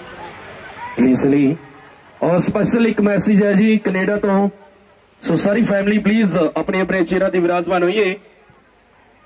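Loud singing plays through loudspeakers in bursts.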